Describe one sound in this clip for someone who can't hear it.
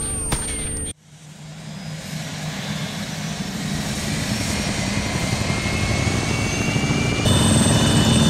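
A helicopter's rotor and engine roar close by.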